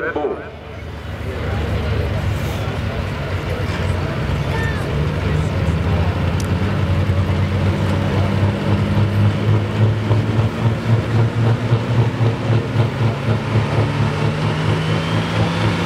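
A second tractor engine rumbles and revs, rising in pitch.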